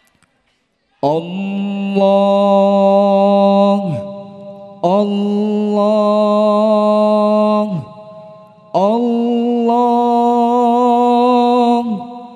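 A group of young men sings together through microphones in long held phrases.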